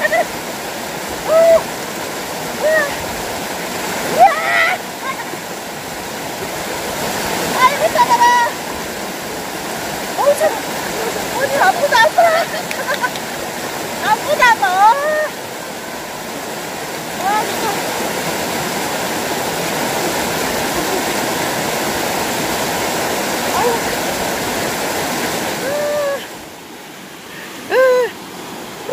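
A woman talks and laughs with animation close by.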